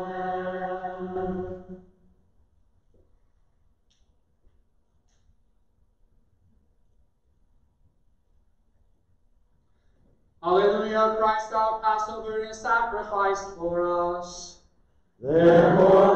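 A man chants in a sung voice, echoing in a large room.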